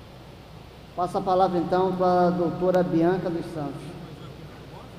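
A man speaks into a microphone, heard over loudspeakers in a large echoing hall.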